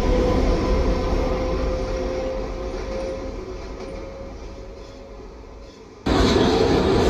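A subway train rumbles past on elevated tracks and fades away.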